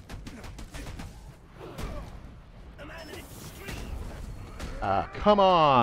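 Punches thud and smack in a quick brawl.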